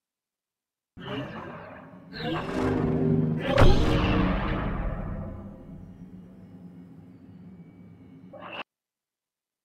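A lightsaber ignites and hums with a crackle.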